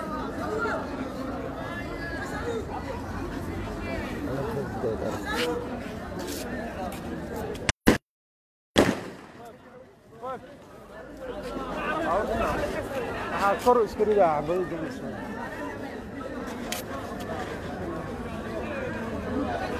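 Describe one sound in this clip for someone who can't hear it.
Voices of a crowd chatter outdoors along a busy street.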